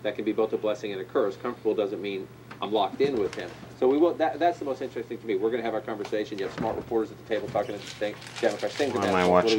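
A middle-aged man talks calmly through a small television speaker.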